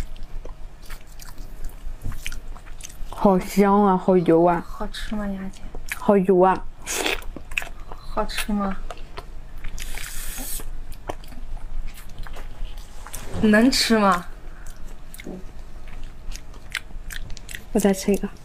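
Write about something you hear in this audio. Plastic gloves crinkle as hands handle food.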